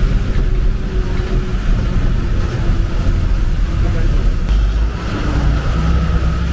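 A vehicle's engine rumbles steadily from inside as it drives along.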